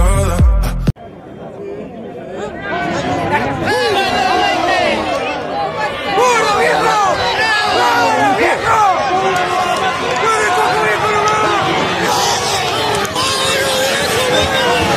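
A large outdoor crowd of men and women chatters and calls out loudly.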